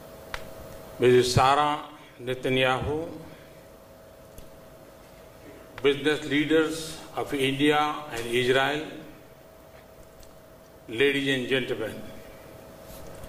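An elderly man speaks through a microphone in short phrases with long pauses.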